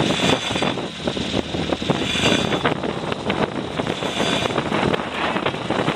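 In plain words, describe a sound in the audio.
A sail flaps and rustles in the wind.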